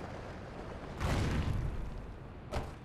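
A heavy thud of a landing, with a whooshing rush.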